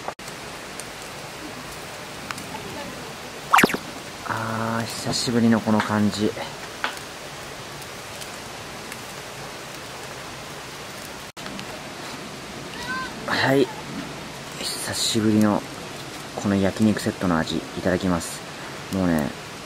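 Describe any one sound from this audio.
Meat sizzles softly on a grill.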